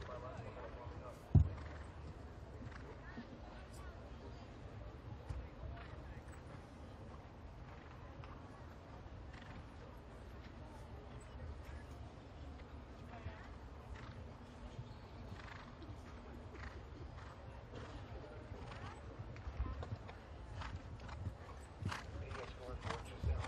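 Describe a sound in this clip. A horse's hooves thud on grass at a canter.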